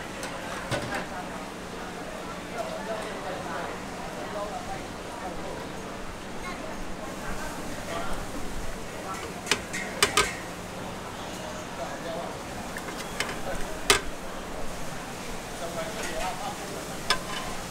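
Utensils clink and knock against metal pots and bowls.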